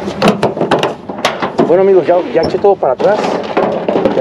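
A pickup tailgate latch clicks and the tailgate clanks open.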